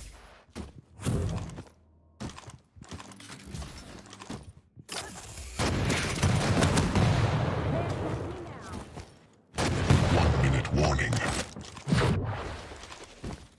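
Weapons fire in loud bursts of shots and blasts.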